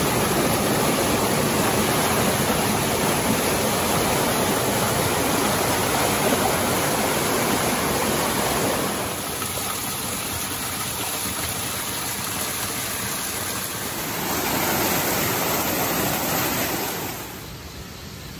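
A rocky stream rushes and splashes over boulders.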